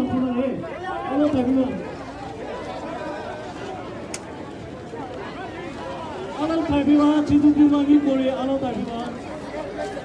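A man shouts close by.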